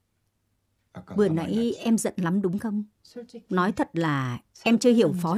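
A young woman speaks gently nearby.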